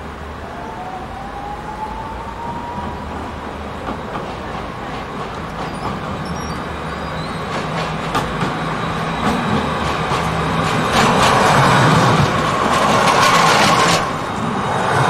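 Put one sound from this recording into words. A tram rolls closer and rumbles loudly past.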